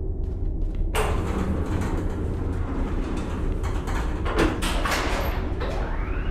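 Elevator doors rumble as they slide open.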